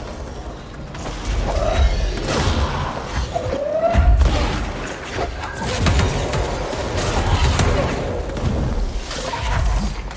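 Loud blasts and crashes of debris burst out again and again.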